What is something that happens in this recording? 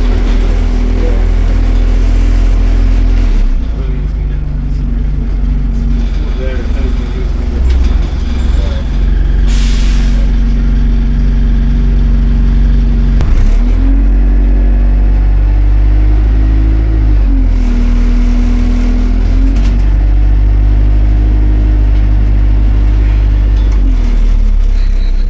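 The bus interior rattles and creaks on the move.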